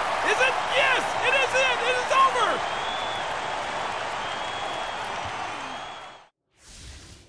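A large crowd cheers and roars loudly in an echoing arena.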